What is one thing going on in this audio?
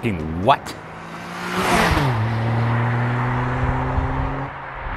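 A car speeds past with a rising engine roar, then drones away into the distance.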